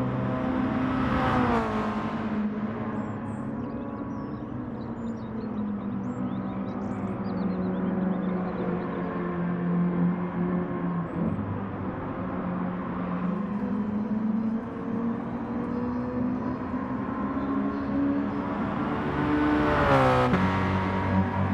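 A racing car whooshes past close by.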